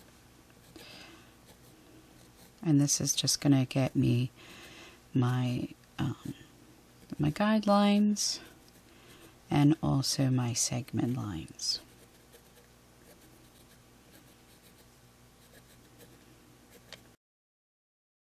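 A stylus scratches lightly across paper.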